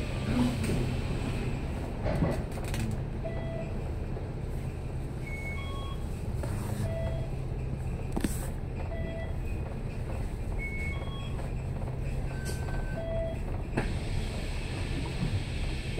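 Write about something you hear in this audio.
Traffic rumbles steadily along a busy city street.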